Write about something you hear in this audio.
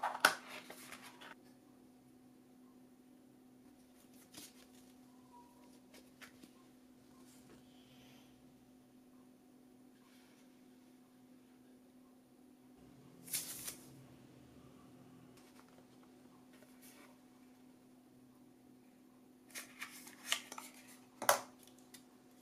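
Packaging and plastic rustle and crinkle as hands handle them.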